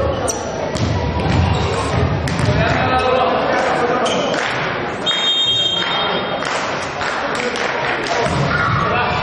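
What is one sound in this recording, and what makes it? Young men shout to each other across a court in an echoing hall.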